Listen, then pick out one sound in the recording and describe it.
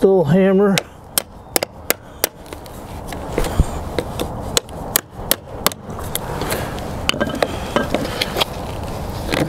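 A hammer taps sharply on a chisel handle again and again.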